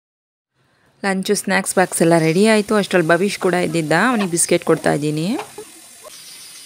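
A young woman talks to a toddler warmly and with animation, close by.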